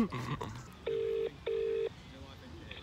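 A phone beeps twice.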